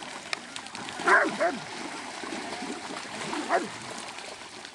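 Hounds bay and yelp excitedly.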